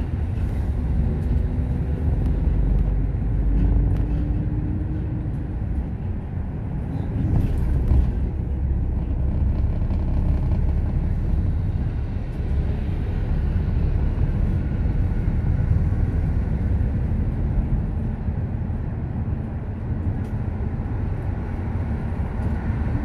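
Road noise rumbles low and steady inside a moving vehicle.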